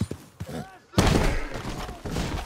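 A wooden fence cracks and breaks as a horse crashes through it.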